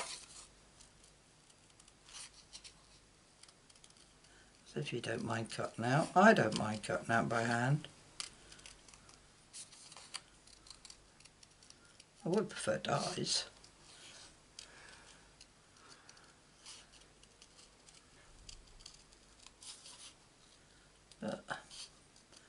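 Paper rustles and crinkles softly as hands handle it.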